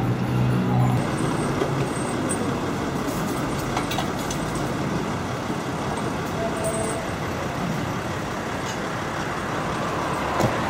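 An ambulance engine idles nearby.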